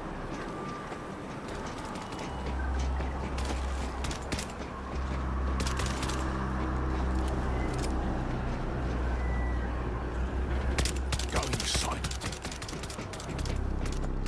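Boots clank on a metal walkway.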